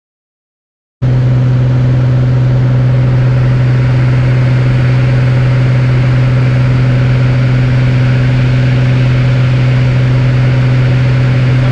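Wind rushes past the cabin.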